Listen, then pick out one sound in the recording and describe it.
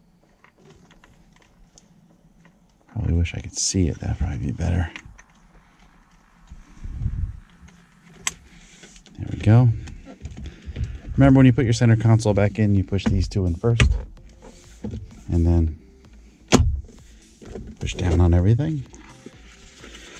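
Plastic trim creaks and clicks as it is pulled loose.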